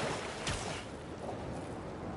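Water rushes and splashes as a figure skims across a river.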